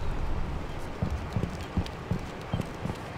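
Footsteps tap on wet stone.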